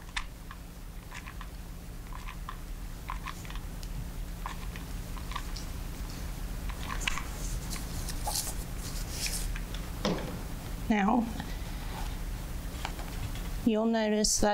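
Fingertips press and dab softly into thick wet paint.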